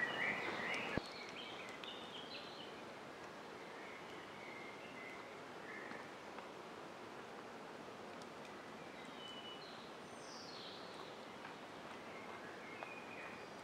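A small wood campfire crackles outdoors.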